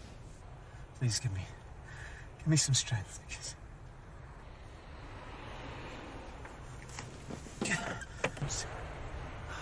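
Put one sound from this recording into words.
A man speaks quietly and pleadingly, close by.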